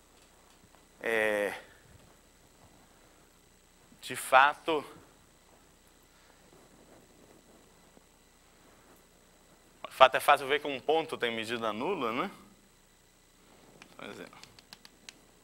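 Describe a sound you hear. A man speaks in short bursts.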